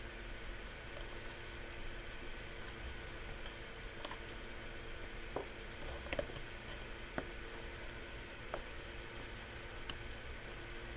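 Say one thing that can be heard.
Plastic cases click and rattle as they are handled.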